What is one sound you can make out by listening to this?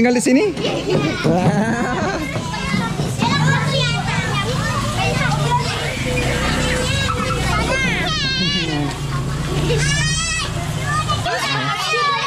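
Children laugh and shout excitedly close by.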